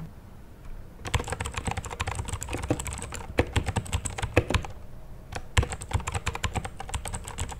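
Keys on a mechanical keyboard clack rapidly as someone types.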